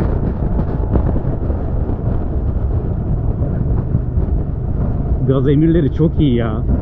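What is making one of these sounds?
Wind roars loudly past a fast-moving motorcycle.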